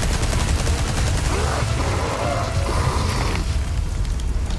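A monster screeches and growls.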